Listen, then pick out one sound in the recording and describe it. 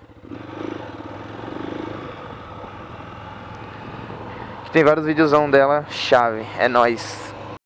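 A motorcycle engine hums steadily as the bike rolls along.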